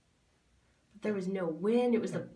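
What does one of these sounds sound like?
A young man speaks with animation, heard through an online call.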